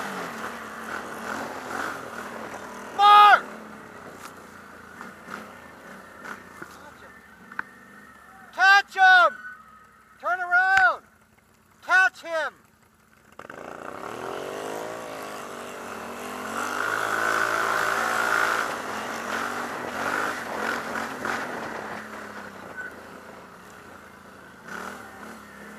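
A quad bike engine hums and revs close by.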